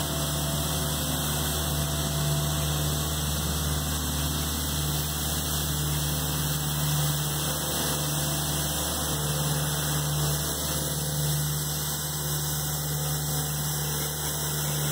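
Rotating brushes of a street sweeper whir and scrape against the road.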